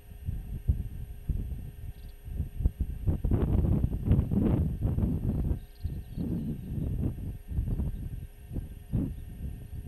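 Strong wind gusts roar and buffet in the open.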